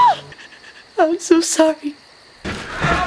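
A young woman sobs and whimpers close by.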